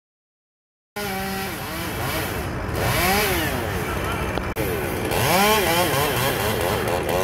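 A chainsaw revs up and down.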